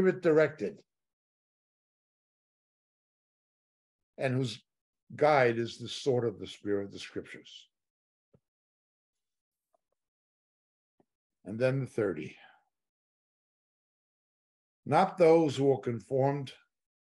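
An older man speaks calmly into a close microphone, pausing between phrases.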